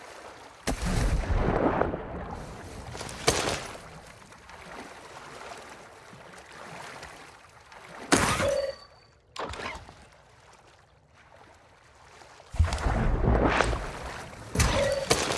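Debris rattles down after an explosion.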